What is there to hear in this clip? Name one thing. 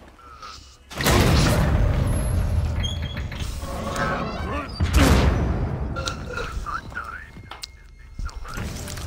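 A heavy metal door scrapes and grinds open.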